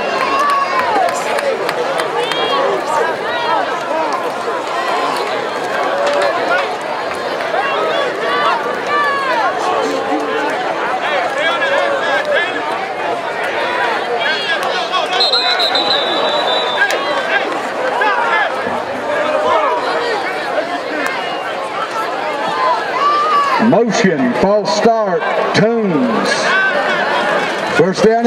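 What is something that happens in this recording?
A large crowd cheers and shouts in the stands outdoors.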